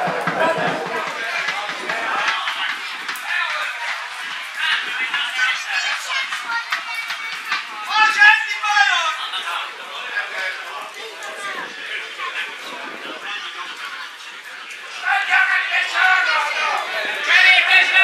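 Men shout to each other far off across an open field.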